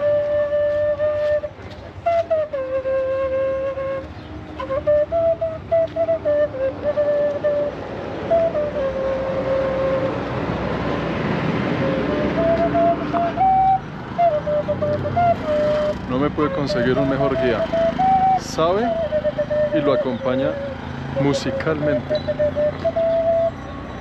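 A boy plays a shrill melody on a wind pipe nearby.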